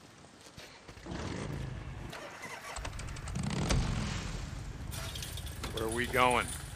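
A motorcycle engine starts and rumbles, revving up.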